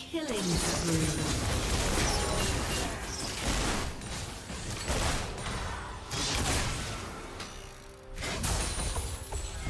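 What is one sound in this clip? Spells and weapon attacks clash and crackle in a game battle.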